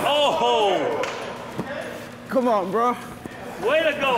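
A man drops with a soft thud onto a padded crash mat.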